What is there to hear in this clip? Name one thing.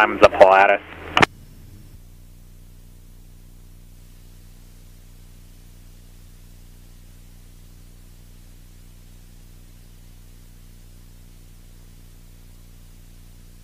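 A small plane's engine drones steadily.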